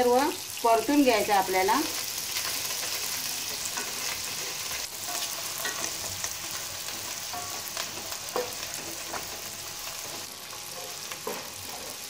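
A wooden spatula scrapes and stirs inside a pan.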